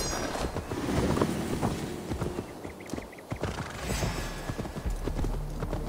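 Horse hooves thud on soft ground.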